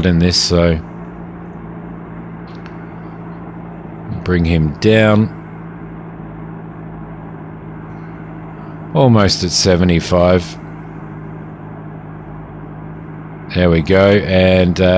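A helicopter engine idles with a steady low hum.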